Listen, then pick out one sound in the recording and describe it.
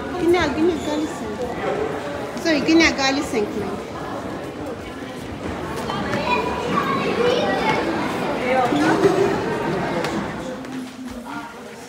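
Children chatter and call out loudly in a busy, echoing corridor.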